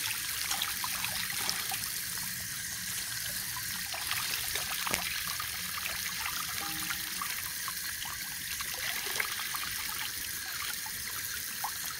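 Water runs steadily from a tap into a basin.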